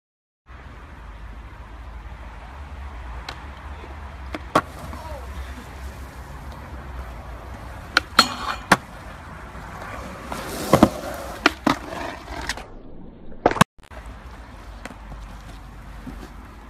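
Skateboard wheels rumble steadily over wet concrete.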